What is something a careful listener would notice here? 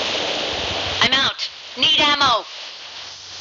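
A parachute snaps open with a flapping rustle.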